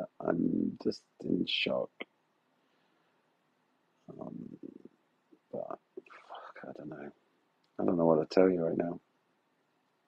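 A middle-aged man talks quietly and close to a phone microphone.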